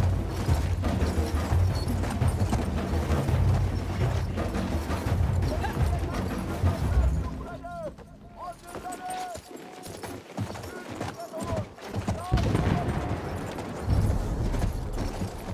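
A horse gallops, hooves thudding on soft ground.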